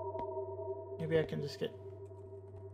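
A man speaks briefly, close to a microphone.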